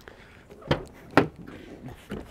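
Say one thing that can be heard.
A car door clicks and swings open.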